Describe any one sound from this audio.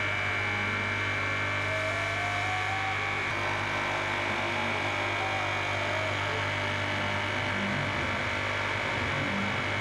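An oscillating blade machine hums as it cuts through a block of foam.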